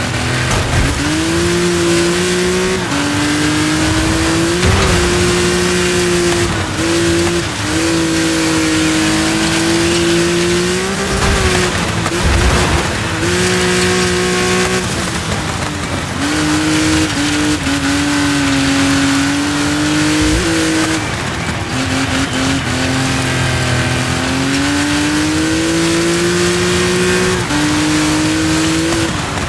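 A car engine revs hard, rising and dropping in pitch as the gears change.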